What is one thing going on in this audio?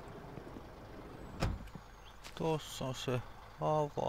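A van door clicks shut.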